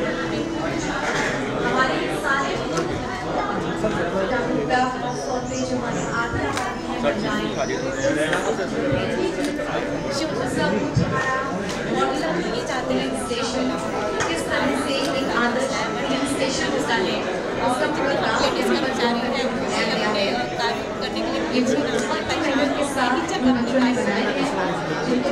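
A murmur of voices fills a busy indoor space.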